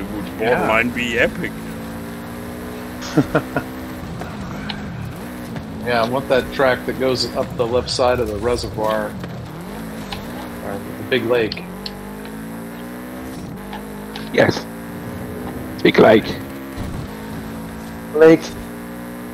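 A car engine roars and revs up and down as the car races along.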